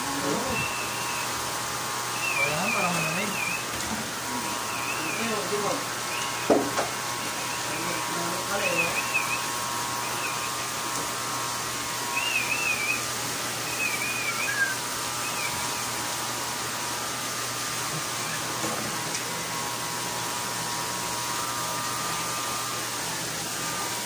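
An electric hair clipper buzzes steadily close by.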